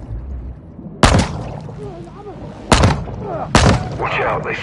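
A gun fires in muffled bursts underwater.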